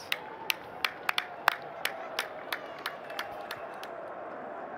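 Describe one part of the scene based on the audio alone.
Two men clap their hands.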